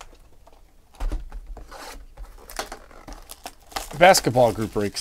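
Plastic wrapping crinkles as hands tear it off a box.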